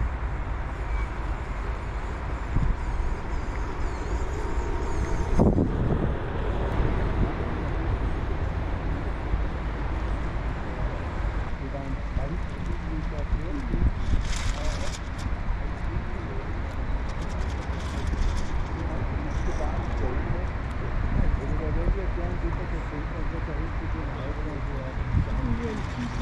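Wind blows strongly across open water outdoors.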